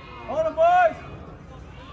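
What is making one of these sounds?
A man shouts loudly nearby outdoors.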